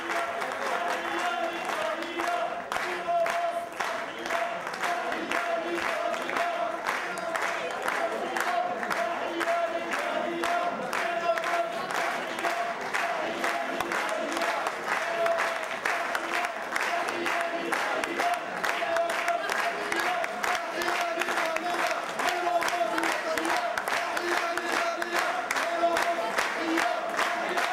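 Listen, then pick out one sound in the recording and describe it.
A crowd applauds with rapid clapping.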